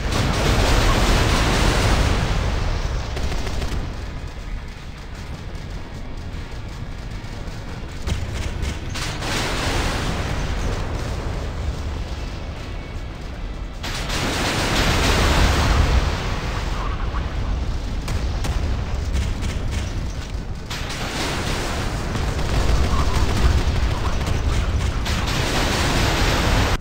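A plane's engine roars steadily.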